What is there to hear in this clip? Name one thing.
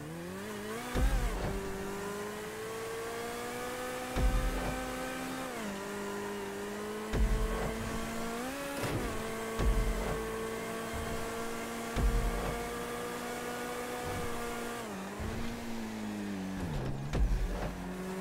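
A car's gearbox thumps as it shifts gears.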